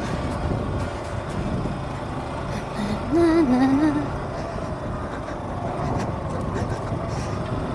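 Tyres crunch over a rough gravel road.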